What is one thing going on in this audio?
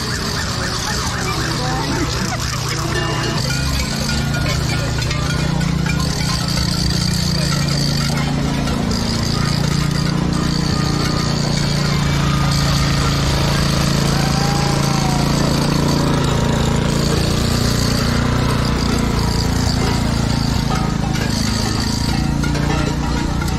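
Cowbells clang and rattle on costumed figures walking by.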